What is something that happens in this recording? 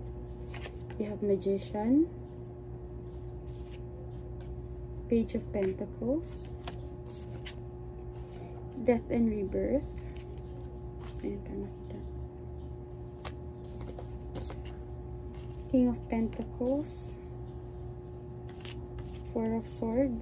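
A woman speaks calmly in short bursts close to a microphone.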